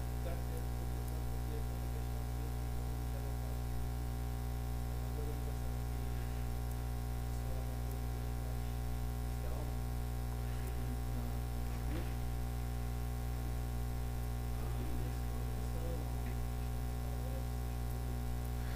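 A man speaks calmly at a distance in an echoing room.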